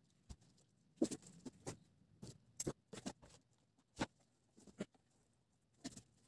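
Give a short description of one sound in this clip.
Cardboard rustles and taps as hands handle it.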